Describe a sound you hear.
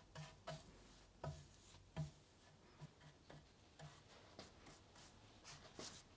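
A paintbrush swishes softly across a wooden surface.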